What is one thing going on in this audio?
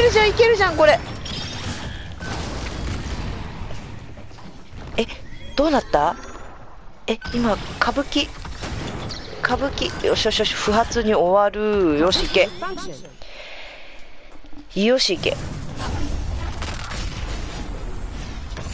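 Electronic sound effects whoosh and chime.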